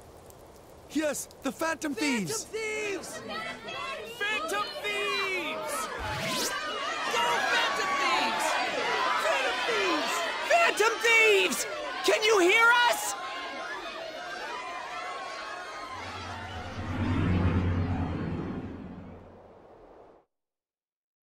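A crowd of people cheers and shouts loudly.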